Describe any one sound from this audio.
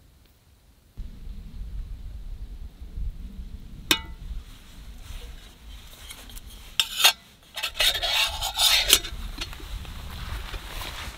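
Metal parts clink and scrape as they are handled.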